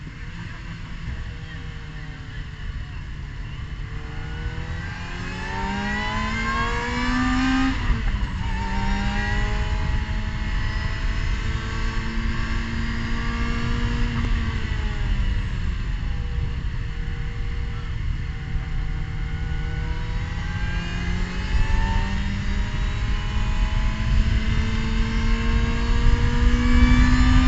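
A racing car engine roars at high revs, heard from inside the cockpit as the car accelerates.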